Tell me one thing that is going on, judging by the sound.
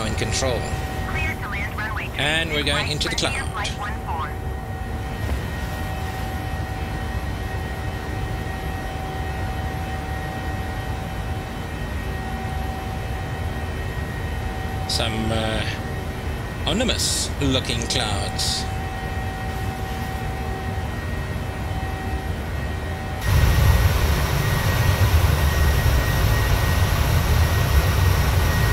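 Jet engines drone with a steady low rumble, growing louder near the end.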